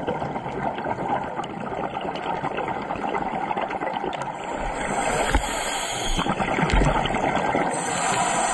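Water crackles and hisses softly all around, heard underwater.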